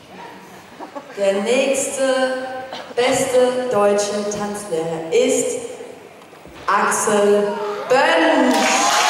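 A young woman speaks with animation through a microphone over loudspeakers.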